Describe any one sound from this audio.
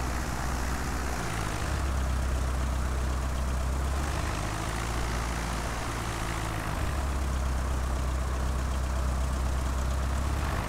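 A small propeller plane's engine drones steadily, rising and falling slightly in pitch.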